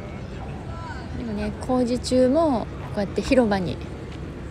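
A woman talks with animation outdoors.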